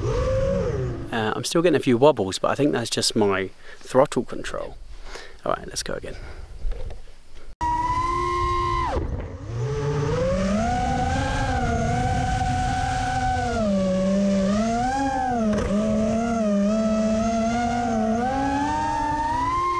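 A racing quadcopter's motors whine, rising and falling in pitch.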